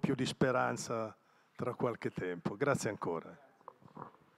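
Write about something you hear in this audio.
An elderly man speaks into a microphone in a large echoing room.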